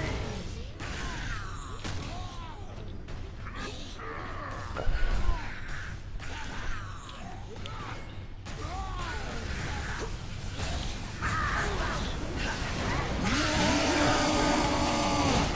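Jet thrusters roar in short bursts.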